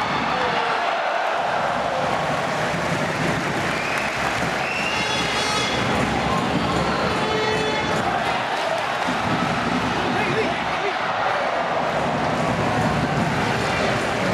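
Footballers shout to each other across an open field.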